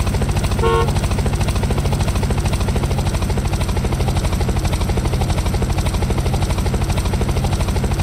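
A propeller plane's engine drones steadily with a fast, throbbing pulse.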